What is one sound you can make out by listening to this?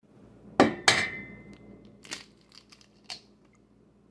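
An egg cracks against the rim of a metal pot.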